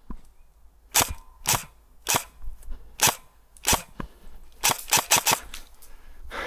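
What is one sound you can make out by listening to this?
An airsoft gun fires a quick series of sharp shots.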